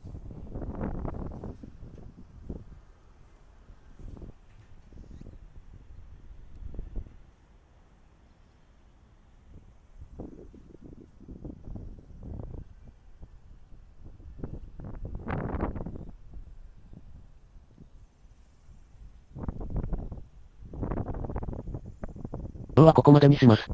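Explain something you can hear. Wind gusts across the microphone outdoors, rising and falling.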